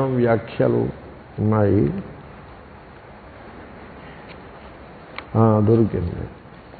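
An elderly man speaks slowly and expressively into a headset microphone, with long pauses.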